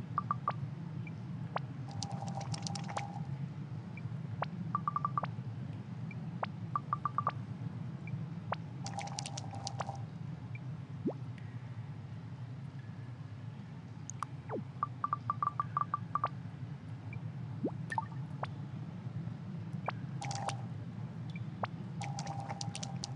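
Quick electronic blips chatter in short bursts.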